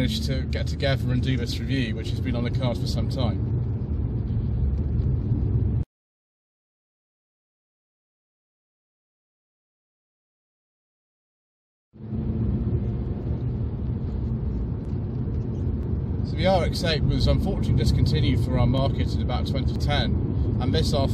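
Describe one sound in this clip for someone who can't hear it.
A car engine hums with road rumble while driving.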